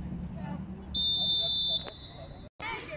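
A referee's whistle blows one long, shrill blast.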